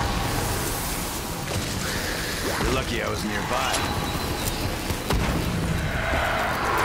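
A weapon fires with a sharp blast.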